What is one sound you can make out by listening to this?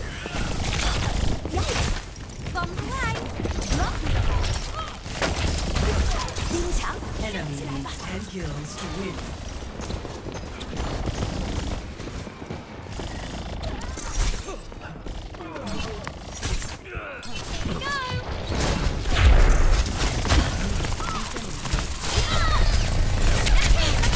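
A blaster gun fires icy blasts in bursts.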